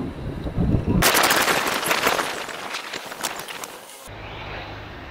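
A car drives past in a tunnel.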